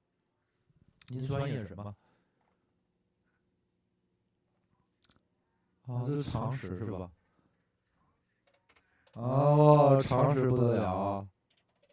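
A man speaks through a microphone with animation.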